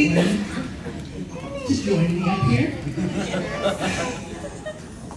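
A young woman speaks into a microphone, heard through loudspeakers in a large echoing room.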